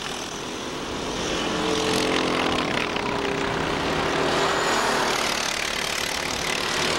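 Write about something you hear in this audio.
Go-kart engines whine loudly as karts race past.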